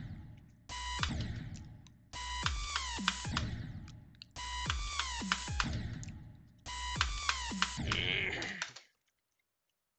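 Loud electronic game music with a heavy beat starts, cuts off abruptly and restarts several times.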